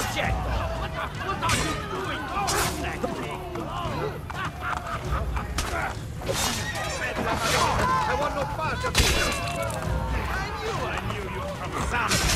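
Fists thud against bodies in a brawl.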